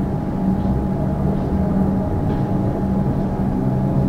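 A train rumbles as it starts to pull away.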